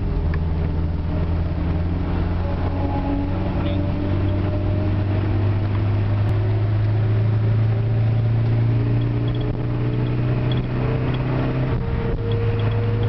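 A car engine drones loudly and steadily from inside the car, rising and falling in pitch as the car speeds along.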